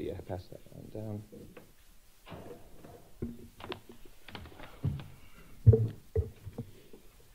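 Objects knock and thump on a table.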